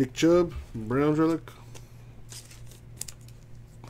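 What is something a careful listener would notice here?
Trading cards rustle and flick as hands shuffle through them.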